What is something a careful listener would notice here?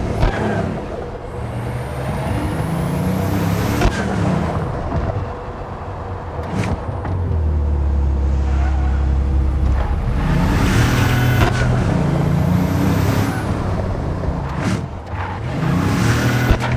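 A car engine roars and revs as a sports car speeds along.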